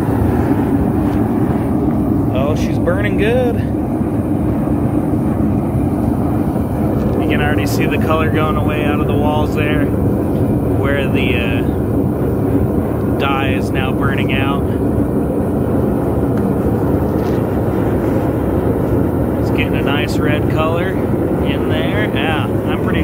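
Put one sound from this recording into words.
A gas burner roars steadily with a loud rushing flame.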